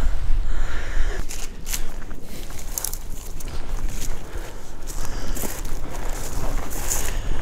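Dry plants rustle and crackle underfoot.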